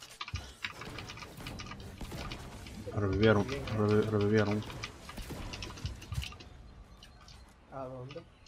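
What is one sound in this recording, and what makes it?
Game sound effects clatter and whoosh.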